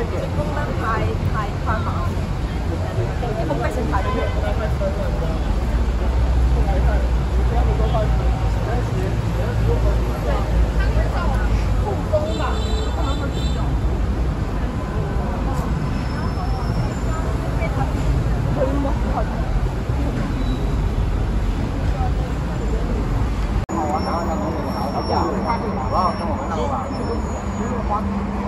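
Traffic rumbles steadily in the background.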